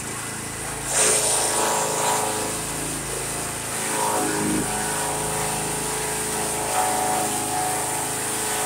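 A wood chipper chops up a branch fed into its chute.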